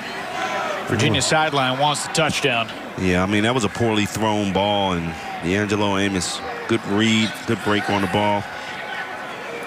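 A man speaks calmly through a microphone, echoing across a stadium.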